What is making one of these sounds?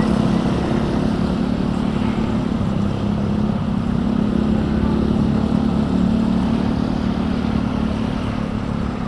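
Wind rushes past a moving rider.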